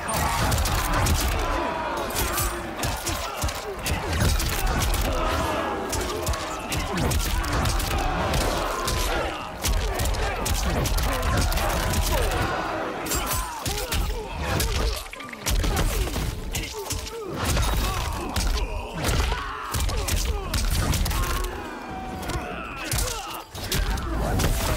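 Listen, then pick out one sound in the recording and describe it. Bright magic blasts burst with a whoosh.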